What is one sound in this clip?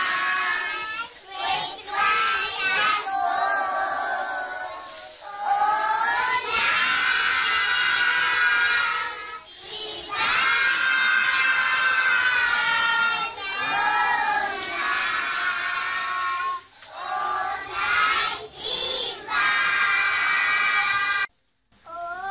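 A group of young children sing loudly together close by.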